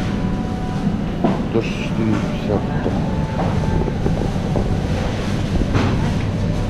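Distant voices murmur through a large, echoing hall.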